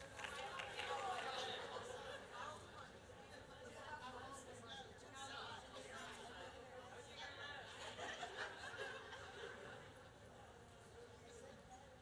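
An elderly woman speaks calmly through a microphone.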